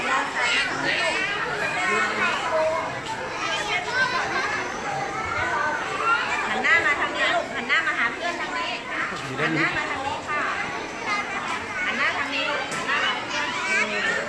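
A young woman speaks to the children.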